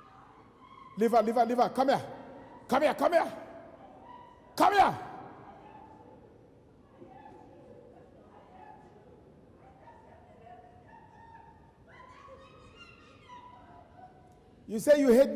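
A man shouts in short bursts in a large hall.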